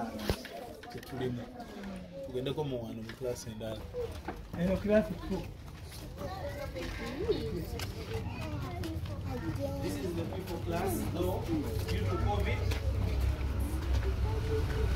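A crowd of men and women sing nearby.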